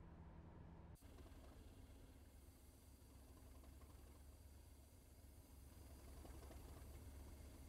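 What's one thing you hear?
A diesel locomotive rumbles past outdoors.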